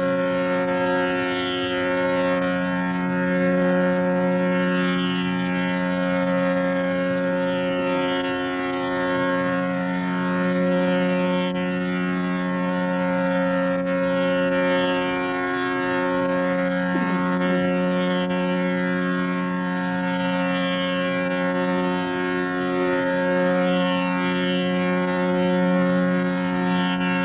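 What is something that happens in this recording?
A harmonium plays along with the singing.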